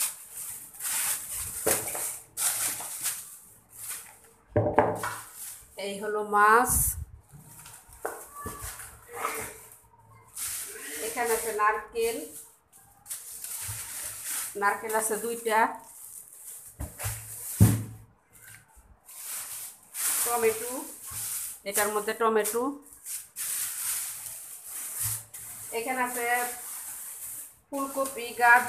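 Plastic bags rustle and crinkle as hands handle them.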